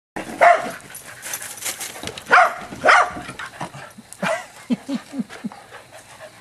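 Dogs bark and yelp excitedly nearby.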